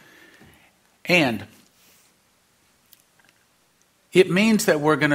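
A middle-aged man speaks with emphasis through a microphone, in short bursts with pauses.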